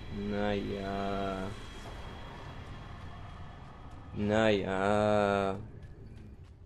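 A musical chime rings out and fades.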